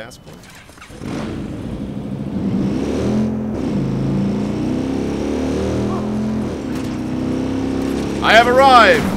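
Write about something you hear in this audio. A motorcycle engine starts up and rumbles steadily.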